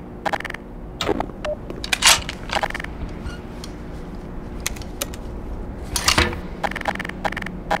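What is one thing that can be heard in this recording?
A gun clicks and rattles as it is handled.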